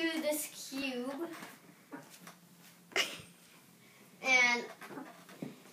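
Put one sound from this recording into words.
A young boy speaks playfully and laughs close by.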